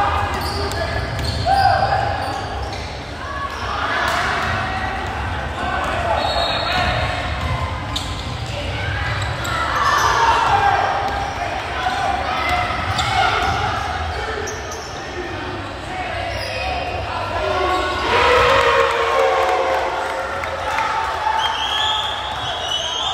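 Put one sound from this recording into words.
Young men shout and call out, echoing in a large hall.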